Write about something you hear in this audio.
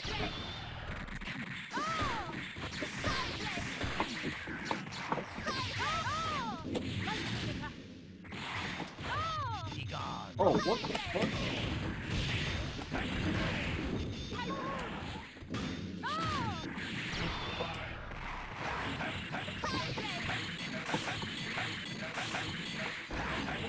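Fighting game blasts, hits and whooshes burst rapidly.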